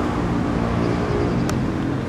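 Water splashes steadily from a fountain.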